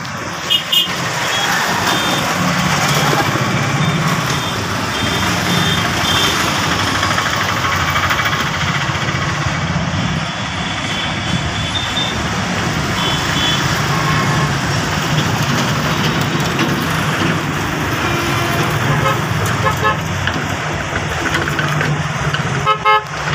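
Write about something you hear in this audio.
A freight train rumbles and clatters steadily along the tracks close by.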